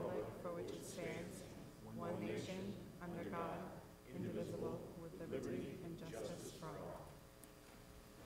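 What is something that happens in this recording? A group of men and women recite together in unison in a large echoing hall.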